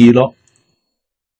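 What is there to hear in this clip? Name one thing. An elderly man speaks briefly and calmly into a close microphone.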